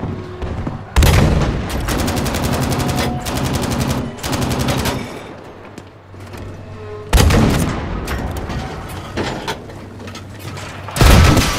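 A tank cannon fires with loud, booming blasts.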